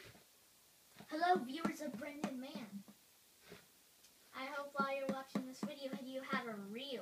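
A man speaks in an animated, cartoonish puppet voice close by.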